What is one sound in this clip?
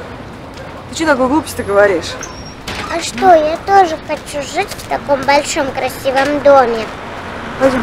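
A young child speaks with animation nearby.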